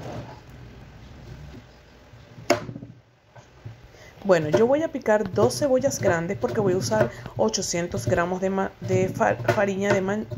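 A knife cuts through an onion onto a plastic board.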